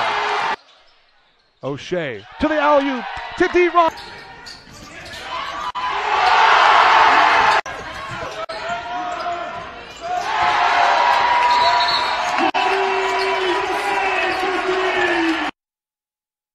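A crowd cheers in a large echoing gym.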